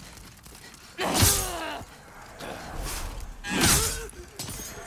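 Metal weapons clash in a fight.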